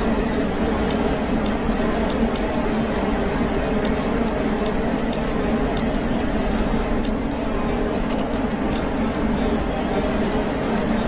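Quick footsteps tap on a stone floor.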